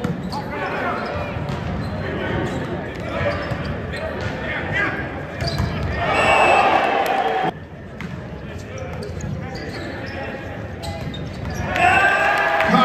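A volleyball is struck hard during a rally.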